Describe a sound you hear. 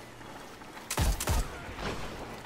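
A sniper rifle fires two loud, sharp shots.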